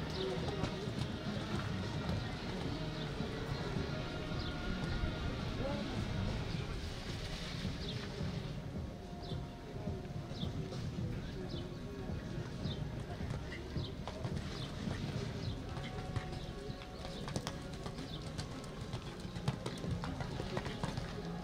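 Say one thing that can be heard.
A horse canters, its hooves thudding softly on sand.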